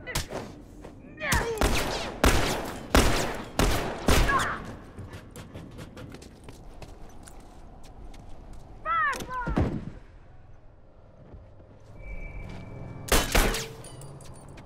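Gunshots ring out in loud bursts.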